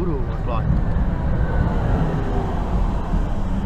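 A tram rumbles past close by.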